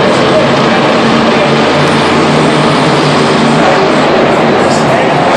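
Monster truck engines roar loudly in a large echoing stadium.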